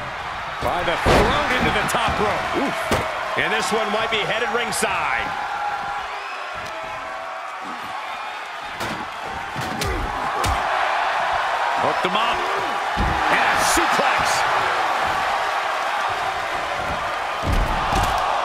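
Bodies slam heavily onto the floor with loud thuds.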